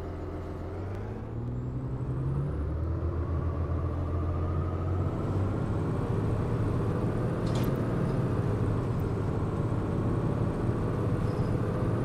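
An articulated diesel city bus pulls away, its engine rising in pitch.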